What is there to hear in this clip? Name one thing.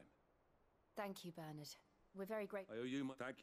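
A young woman speaks gratefully and politely.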